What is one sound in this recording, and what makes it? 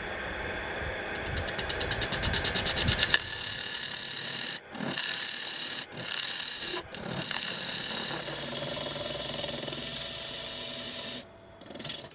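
A chisel scrapes and chatters against a spinning resin blank.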